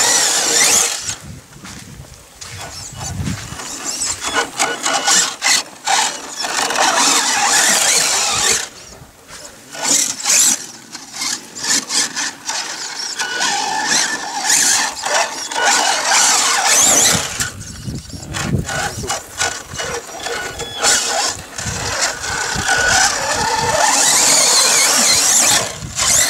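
A small electric model car whines as it races and revs over loose sand.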